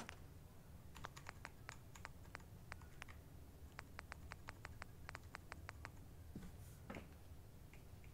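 Soft electronic menu clicks tick in quick runs.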